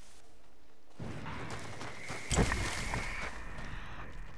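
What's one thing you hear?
Pine branches brush and swish against a passing body.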